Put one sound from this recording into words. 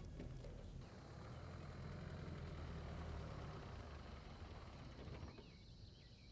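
A car engine rumbles as a car pulls up and stops nearby.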